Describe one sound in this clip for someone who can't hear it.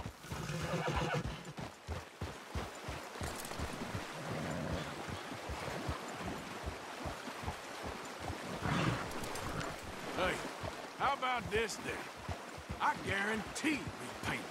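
Horses splash and wade through a shallow stream.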